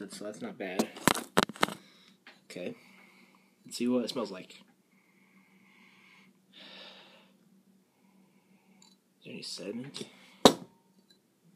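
A glass clinks down on a table.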